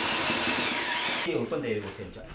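A power mixer whirs loudly, then stops.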